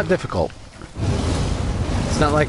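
A fireball bursts with a loud whooshing roar.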